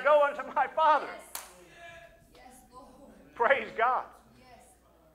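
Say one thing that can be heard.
A middle-aged man speaks with animation in a large echoing hall.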